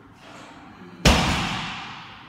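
A loaded barbell clanks and its weight plates rattle.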